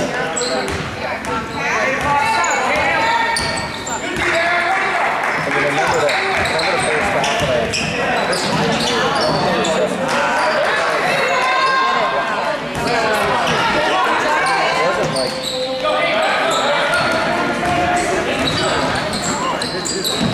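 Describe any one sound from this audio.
A crowd of spectators talks and cheers in an echoing gym.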